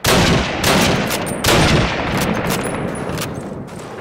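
A rifle fires loudly with a sharp crack.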